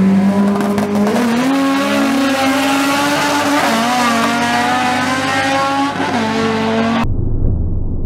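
A car engine roars loudly and revs up as the car accelerates away.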